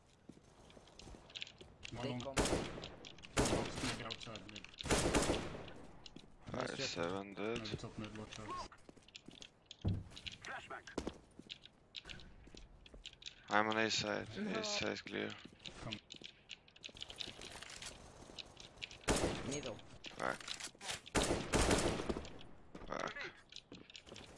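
A rifle fires single shots.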